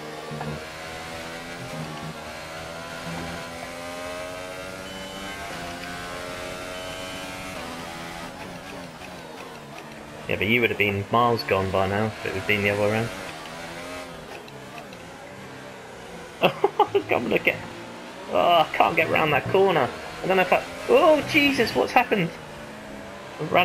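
A racing car engine whines, rising and falling in pitch as the car speeds up and brakes.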